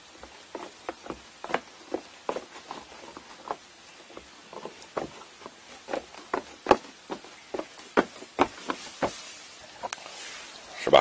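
Sandals slap and scuff on wooden boards.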